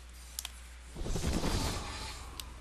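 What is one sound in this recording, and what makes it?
A swarm of bats flutters past with a rushing whoosh.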